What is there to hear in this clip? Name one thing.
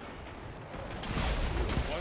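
Gunfire blasts in rapid bursts.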